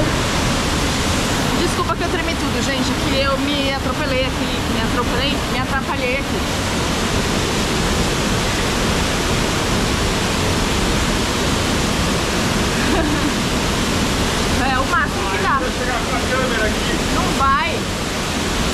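Water rushes and splashes steadily over rocks.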